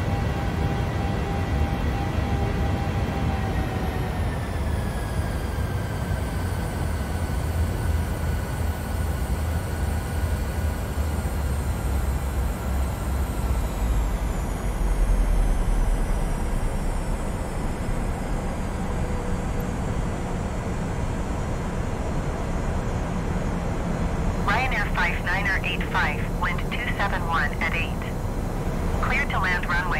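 A jet engine whines steadily, its pitch slowly falling.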